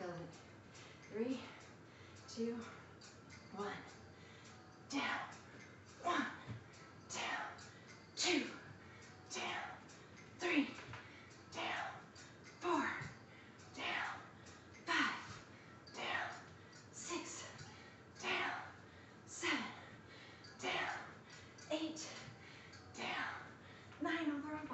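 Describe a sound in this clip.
A woman exhales sharply in rhythm with each exercise repetition.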